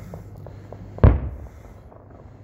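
A firework bursts with a loud boom, echoing outdoors.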